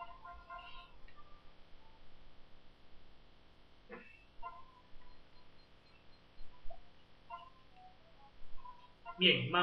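A handheld game console plays short electronic menu beeps.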